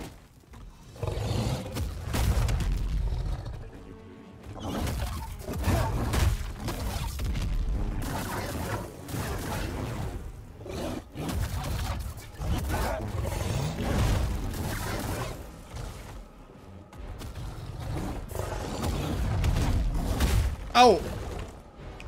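Heavy thuds and impacts boom as blows land.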